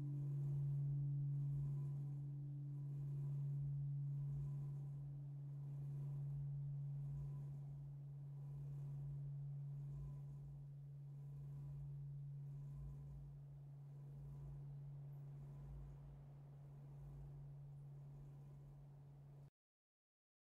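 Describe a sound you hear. A large swinging church bell tolls with a deep ringing hum that slowly fades.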